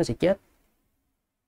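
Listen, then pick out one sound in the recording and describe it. A young man speaks a short word calmly, close to a microphone.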